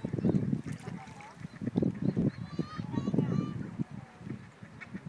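A swan splashes and dabbles in shallow water close by.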